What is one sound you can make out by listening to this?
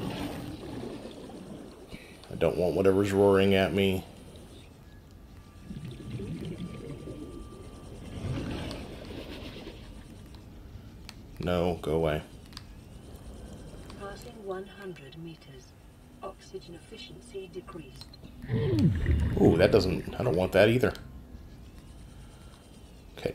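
A small underwater craft hums steadily as it glides along.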